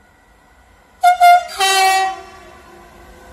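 A train horn blasts twice, loud and close.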